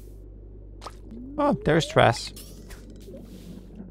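A fishing line is cast out with a quick whoosh.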